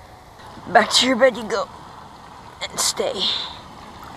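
A fish splashes as it is dropped into water.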